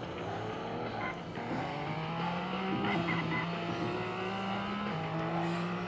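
A game car engine hums steadily and shifts pitch as it drives.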